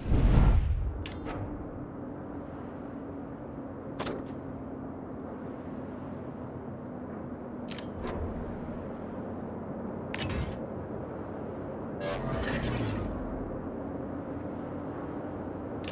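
Water rushes steadily along a moving warship's hull.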